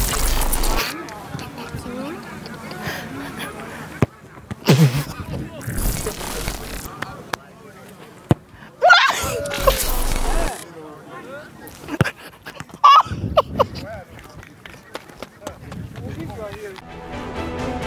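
A small crowd cheers and shouts outdoors.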